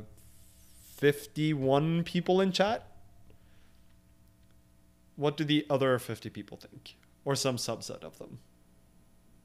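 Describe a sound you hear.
A man speaks calmly into a close microphone, in short bursts.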